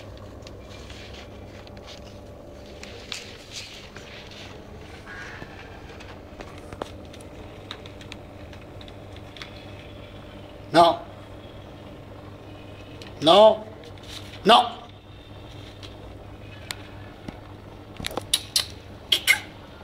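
A puppy chews and tears at crinkling newspaper.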